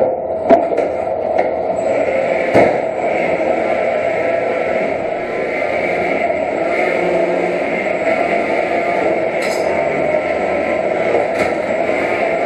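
Robots bang and clatter against each other and metal walls.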